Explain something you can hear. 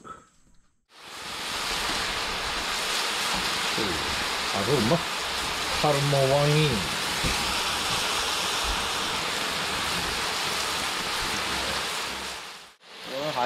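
Chicken sizzles loudly in hot oil.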